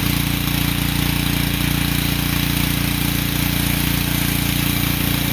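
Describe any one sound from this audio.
A pressure washer engine runs with a steady, throbbing drone.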